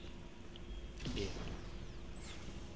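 A burst of flame roars briefly.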